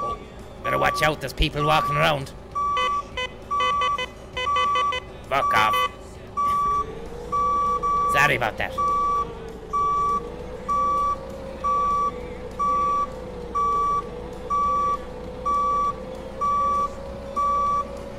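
A forklift's reversing alarm beeps steadily.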